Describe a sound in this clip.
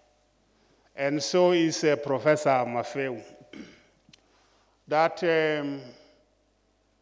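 A man speaks calmly into a microphone in a large room.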